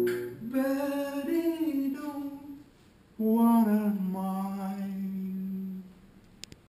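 An older woman sings loudly close by.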